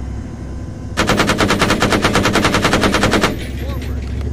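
Twin guns fire in a rapid burst.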